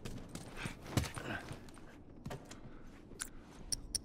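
Footsteps creak across a wooden floor.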